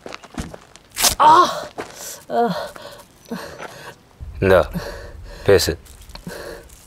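A man speaks tensely close by.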